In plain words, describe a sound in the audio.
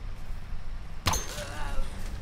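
A bow twangs as an arrow is loosed.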